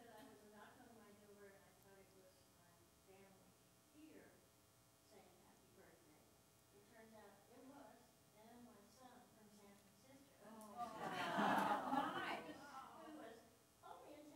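An older man speaks calmly through a microphone in an echoing hall.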